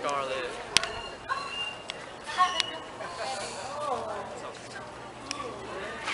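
Teenagers chatter and laugh outdoors.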